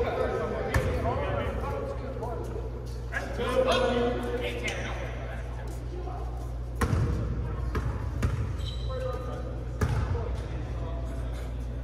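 Young men talk and call out in a large echoing gym.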